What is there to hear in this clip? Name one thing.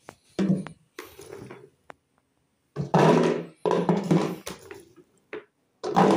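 Olives clink as they drop into a glass jar.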